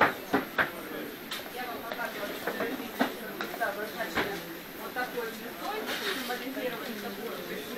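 Men and women murmur and chat indistinctly nearby.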